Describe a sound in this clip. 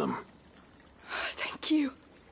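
A young woman says thanks warmly.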